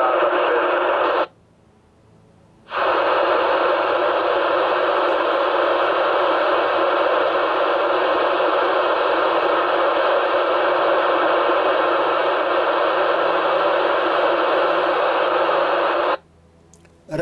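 Static hisses steadily from a radio speaker.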